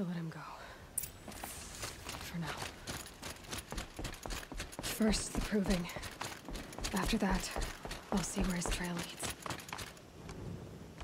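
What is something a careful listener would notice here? Footsteps run quickly over dirt and wooden planks.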